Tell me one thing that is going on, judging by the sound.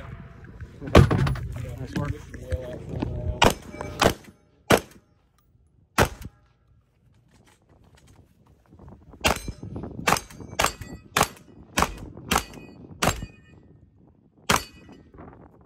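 Pistol shots ring out sharply one after another, outdoors in the open.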